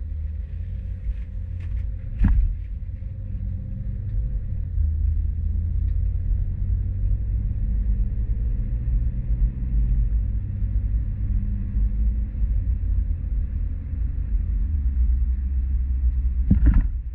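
A car engine hums steadily with tyres rumbling on the road.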